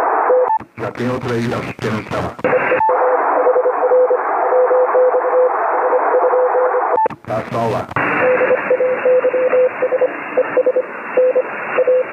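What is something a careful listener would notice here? Morse code beeps in short bursts through a radio loudspeaker.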